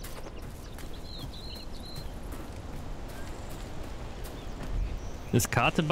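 Footsteps tread on grass.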